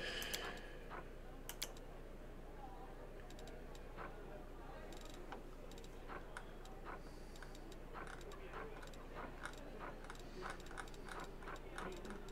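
Soft interface clicks sound as items are picked and moved.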